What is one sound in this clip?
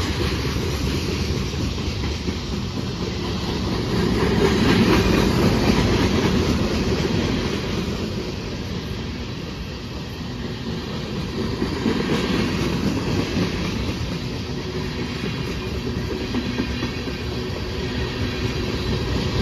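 Freight cars rumble and clatter steadily along the rails close by.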